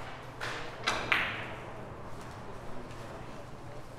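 Billiard balls knock against each other and the cushions.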